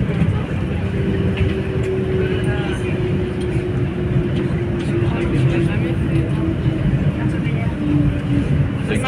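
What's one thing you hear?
Train brakes whine with a slowly falling tone.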